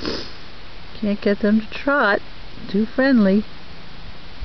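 A horse whinnies loudly nearby.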